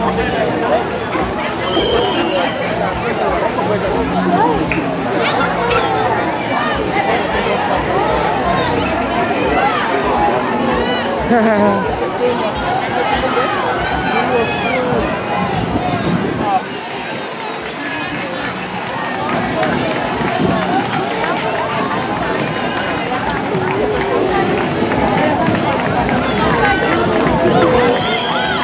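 A large outdoor crowd chatters and calls out all around, close by.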